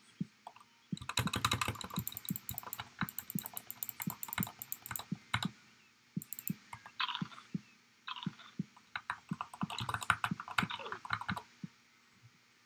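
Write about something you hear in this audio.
Rapid game sound effects of slashing and struggling rattle in quick bursts.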